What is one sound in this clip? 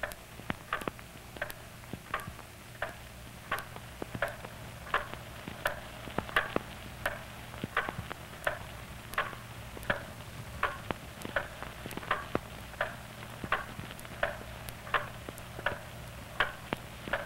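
A wall clock ticks steadily and loudly.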